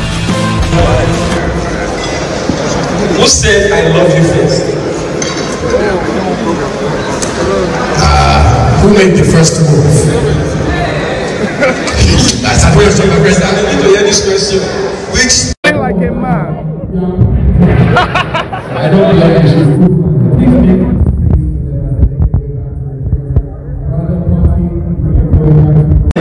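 A crowd chatters in a large, echoing hall.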